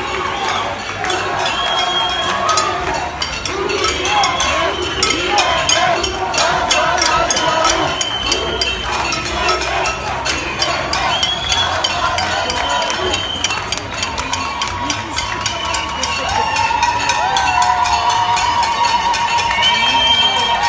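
A large crowd shouts and chants loudly outdoors.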